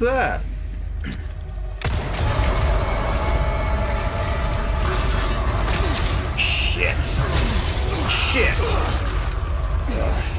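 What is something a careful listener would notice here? Gunshots crack in a video game.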